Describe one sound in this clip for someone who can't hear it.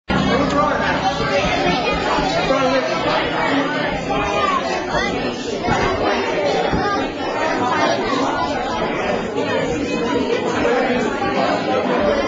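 A crowd of people sings along together.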